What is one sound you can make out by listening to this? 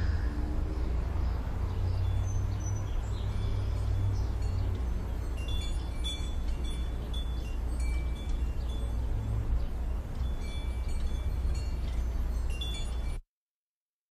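Wind blows and rustles tree leaves outdoors.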